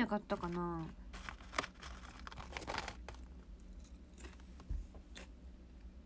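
A plastic wrapper crinkles.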